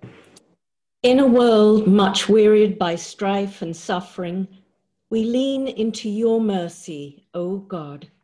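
An older woman speaks with animation over an online call.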